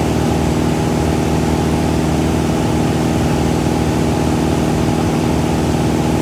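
A small plane's propeller engine drones steadily and loudly from inside the cabin.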